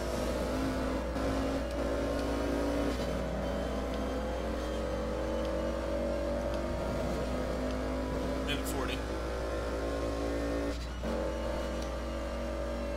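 A car engine hums steadily, rising and falling in pitch as the car drives.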